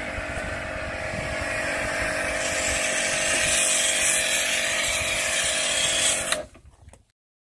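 A pressure washer sprays water hard against a car with a loud hiss.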